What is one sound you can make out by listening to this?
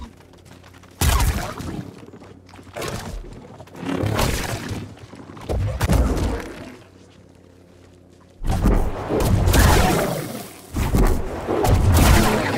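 Blows strike and clash in a fight.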